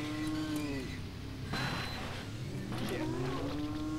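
A car crashes into an animal.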